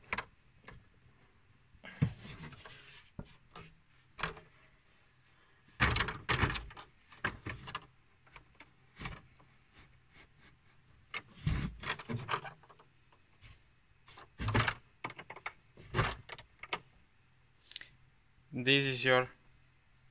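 A metal hex key clicks and scrapes against metal parts.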